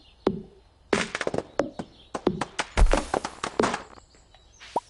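An axe chops into wood with loud, sharp blows.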